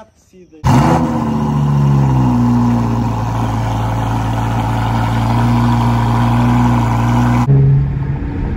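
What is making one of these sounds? A car engine idles nearby with a deep, steady rumble.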